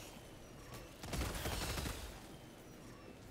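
Gunfire rattles in short, rapid bursts.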